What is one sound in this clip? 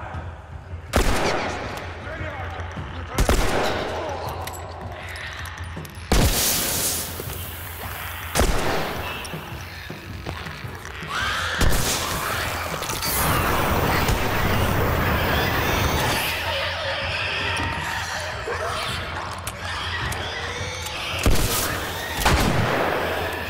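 Loud gunshots ring out one at a time, with pauses between them.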